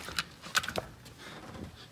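A wooden door clicks and thumps as a hand pushes it open.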